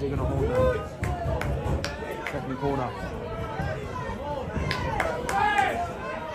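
People clap their hands in a crowd.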